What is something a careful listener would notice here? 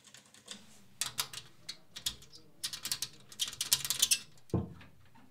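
A blade scrapes against a wooden surface.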